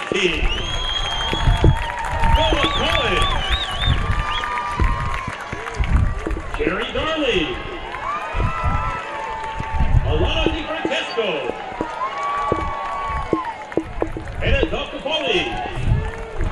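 A group of voices sings over stadium loudspeakers, echoing outdoors.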